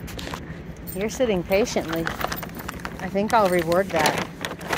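A puppy whines and yelps up close.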